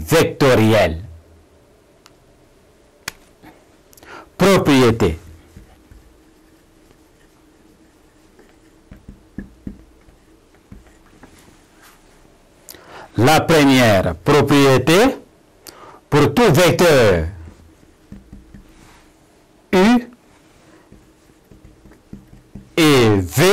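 A man speaks calmly into a clip-on microphone, in short bursts with pauses.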